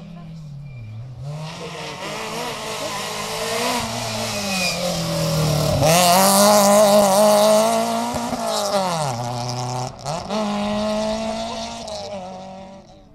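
A second rally car engine revs hard as it speeds past and fades away.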